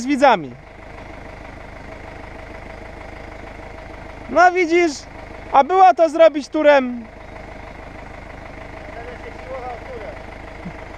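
A tractor engine idles steadily nearby.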